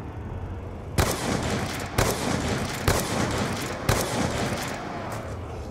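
A rifle fires single shots.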